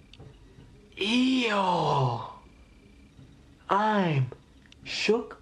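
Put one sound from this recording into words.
A young man makes drawn-out, sliding exclamations.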